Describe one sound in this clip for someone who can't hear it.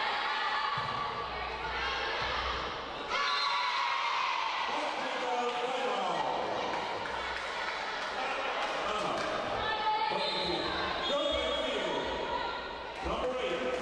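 Young women shout and call out across a large echoing hall.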